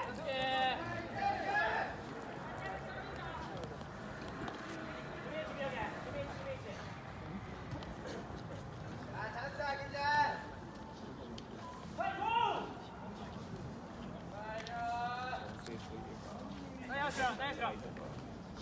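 Young men shout calls loudly from across an open field.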